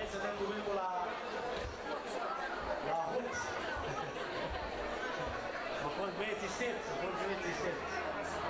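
A middle-aged man speaks with animation through a microphone and loudspeakers.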